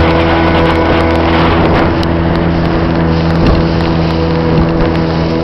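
Wind blows hard across the microphone.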